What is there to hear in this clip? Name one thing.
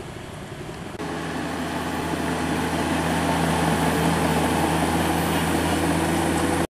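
A bulldozer engine rumbles steadily outdoors.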